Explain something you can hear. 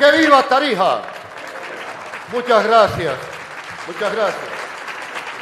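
An elderly man speaks formally into a microphone in a large echoing hall.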